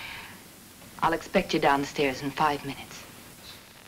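A young woman speaks quietly up close.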